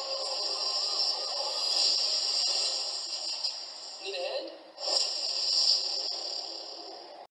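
Loud action film sound plays through big loudspeakers, heard muffled and hissy.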